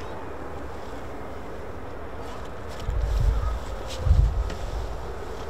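Soft toys brush and bump against a nearby microphone.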